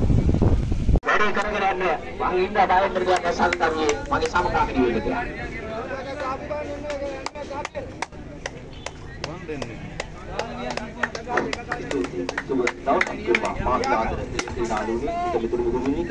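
Men talk and call out across an open field.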